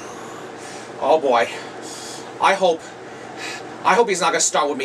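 A man speaks in a comic puppet voice, close by, in bursts.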